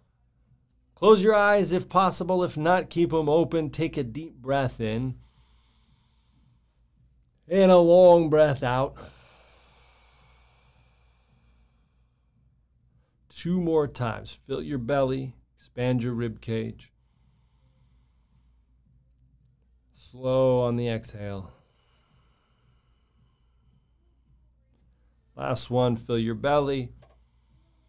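A man speaks calmly and earnestly into a nearby microphone, with long pauses.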